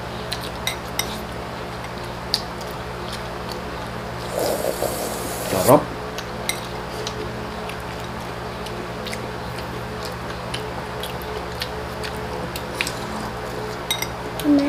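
A man chews and smacks his lips close by.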